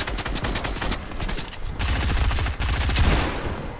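Gunfire rings out in a video game.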